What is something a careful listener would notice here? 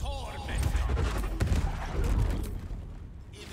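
A magical blast crackles and booms.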